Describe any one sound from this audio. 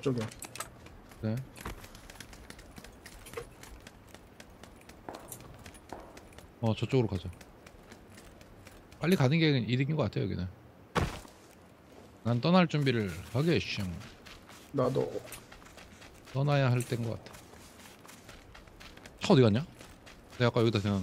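Footsteps thud quickly on hard ground and dirt.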